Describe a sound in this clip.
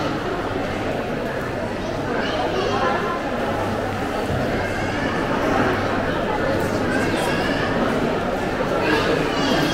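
Footsteps shuffle on a hard floor nearby.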